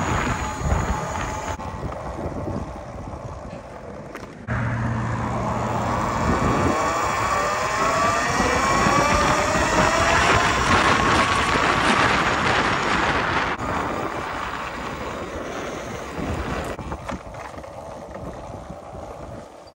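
Wind rushes loudly past while riding a bicycle.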